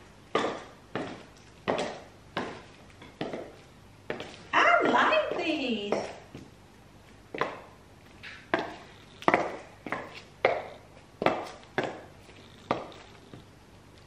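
High heels click on a tile floor.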